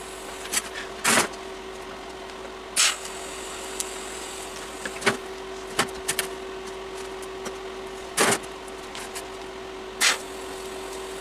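A MIG welder crackles in short bursts of tack welds on steel.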